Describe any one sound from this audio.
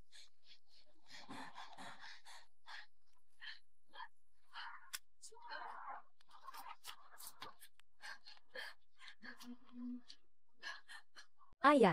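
A young woman cries out and whimpers in pain close by.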